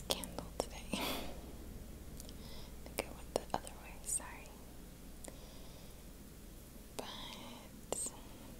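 A young woman whispers close by.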